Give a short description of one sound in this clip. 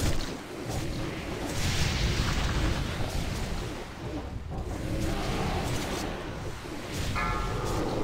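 Spells crash and explode repeatedly.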